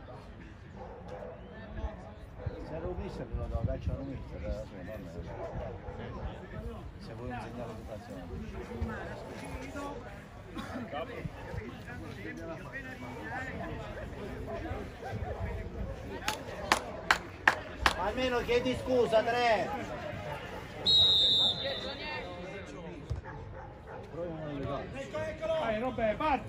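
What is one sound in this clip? Young players shout to each other across an outdoor pitch.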